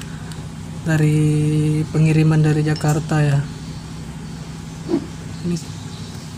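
Plastic packaging crinkles softly in someone's hands.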